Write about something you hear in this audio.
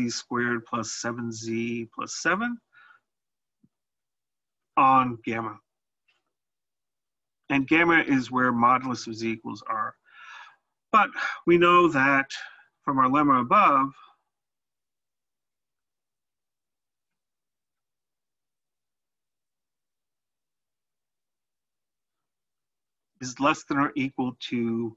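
A man speaks calmly into a close microphone, explaining in pauses.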